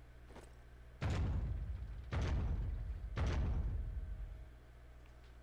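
Heavy footsteps thud and boom with a deep rumble.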